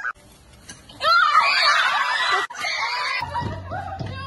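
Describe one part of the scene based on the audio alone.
Young girls laugh and shout close by.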